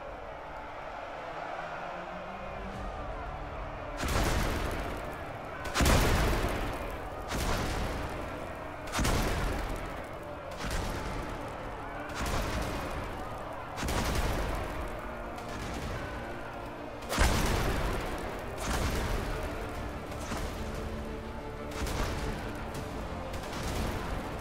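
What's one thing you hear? A large crowd of fighters clamours in battle.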